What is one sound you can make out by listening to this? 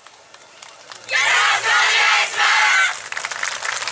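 A group of young women shouts together in unison.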